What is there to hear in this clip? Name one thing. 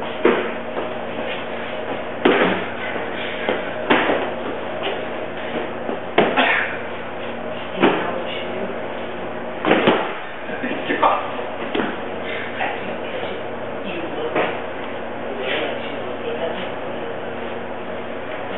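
A cardboard box thumps as it is caught and tossed.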